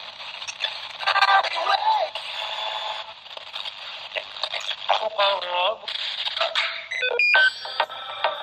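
Whistles and snatches of stations warble as a radio is tuned.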